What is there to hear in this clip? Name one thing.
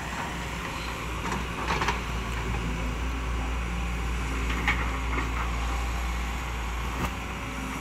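An excavator bucket digs and squelches through wet mud.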